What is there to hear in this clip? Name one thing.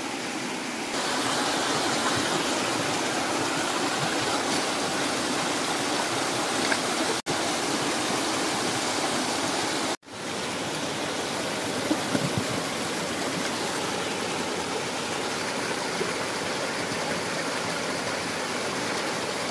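A stream rushes and splashes over rocks close by.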